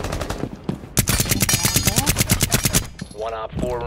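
Rapid gunfire rattles in a quick burst.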